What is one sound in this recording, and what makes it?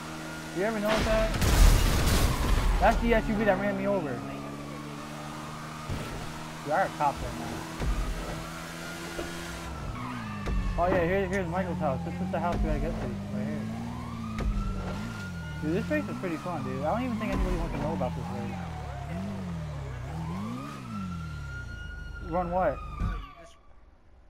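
A motorcycle engine hums and revs up and down as the bike rides along.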